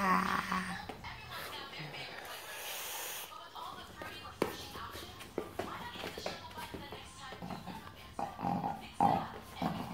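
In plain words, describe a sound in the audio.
Small dogs' paws patter on a hard floor.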